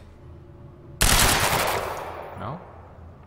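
A rifle fires a loud burst of shots with echoing ringing.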